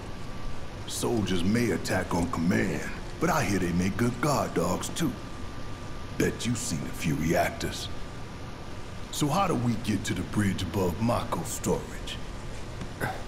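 A man with a deep voice speaks calmly and close by.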